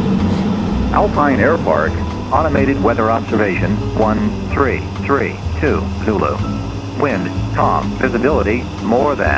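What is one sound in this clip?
A young man speaks calmly over a headset intercom.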